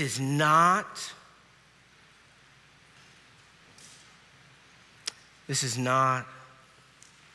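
A man speaks slowly and solemnly through a microphone, with long pauses.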